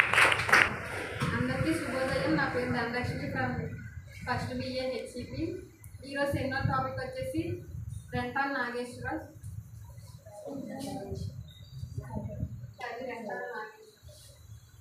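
A young woman speaks clearly to a room, close by.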